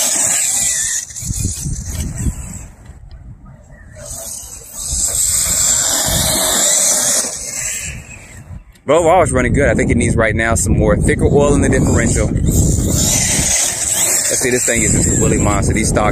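A toy car's electric motor whines and revs as the toy races over grass.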